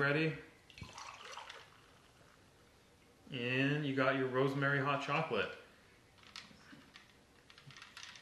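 Liquid pours into a mug.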